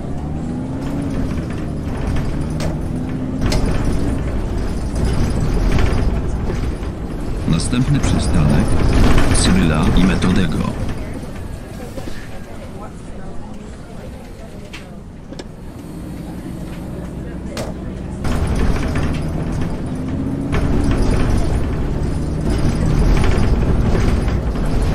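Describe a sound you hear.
A bus engine hums and rises and falls in pitch as the bus drives along.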